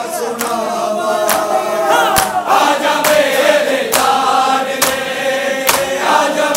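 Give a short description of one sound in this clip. A crowd of men beats their chests in unison in a slow, steady rhythm.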